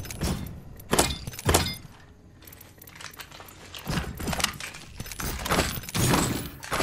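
Short interface clicks sound as game menu items are picked.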